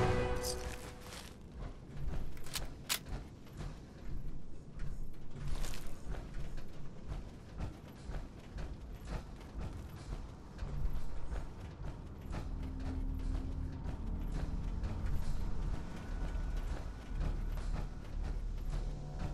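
Heavy metal footsteps clank steadily on a metal floor.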